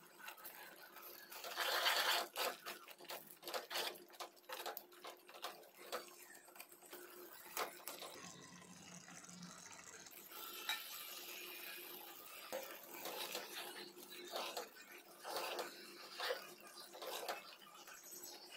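A metal spoon scrapes and clinks against a pot while stirring a thick sauce.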